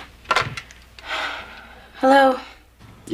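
A young woman speaks calmly into a telephone.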